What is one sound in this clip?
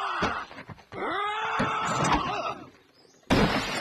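A man's cartoonish voice cries out in alarm.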